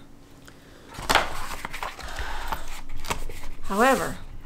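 Paper pages rustle as a sketchbook is opened and pages are turned.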